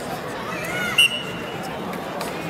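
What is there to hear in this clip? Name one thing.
A referee blows a short whistle.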